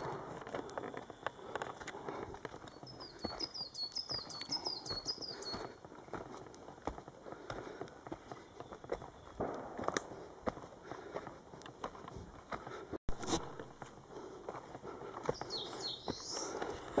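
Footsteps crunch over dry leaves and twigs.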